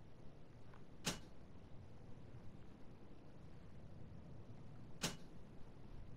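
A menu selection gives a short click.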